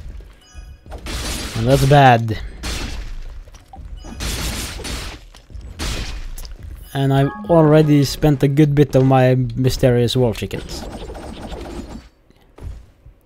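Magic blasts burst with a rushing whoosh.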